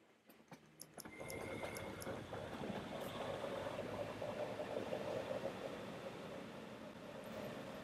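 An electric train rumbles along a track.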